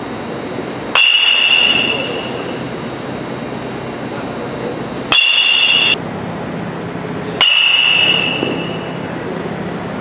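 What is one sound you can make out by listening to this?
A metal bat strikes a ball with a sharp ringing ping, three times.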